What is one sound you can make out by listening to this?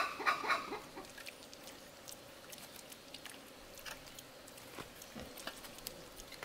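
Piglets snuffle and munch grain.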